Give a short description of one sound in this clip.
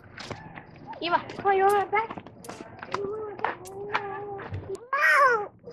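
A young girl talks in a high voice close by.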